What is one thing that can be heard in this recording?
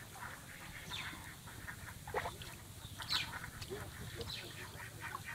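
Water splashes and drips as hands gather a wet fishing net in a shallow pond.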